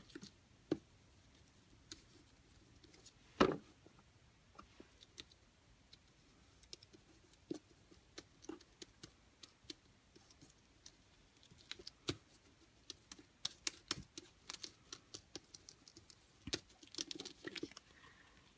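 Fingers rub and crinkle a thin metal foil.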